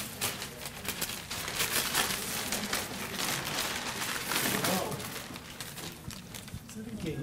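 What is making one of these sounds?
Tissue paper rustles and crinkles as a gift is unwrapped.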